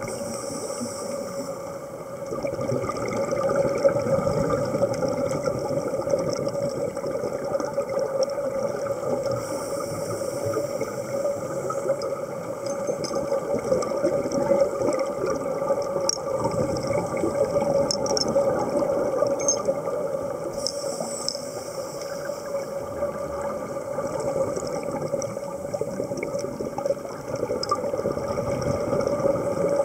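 Scuba divers breathe out through regulators, with bubbles gurgling and rushing underwater.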